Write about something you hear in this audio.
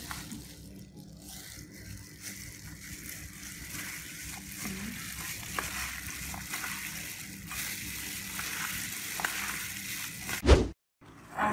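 Gloved hands squelch and rustle.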